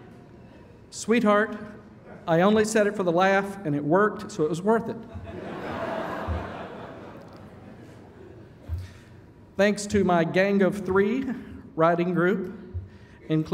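A man speaks into a microphone in a large hall, pausing often.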